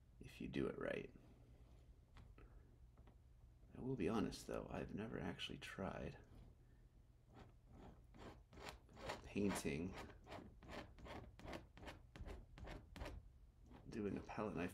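A palette knife scrapes across a canvas.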